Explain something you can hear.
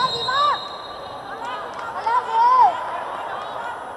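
A volleyball bounces on the floor.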